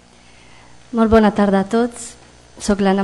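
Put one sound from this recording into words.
A middle-aged woman reads out into a microphone.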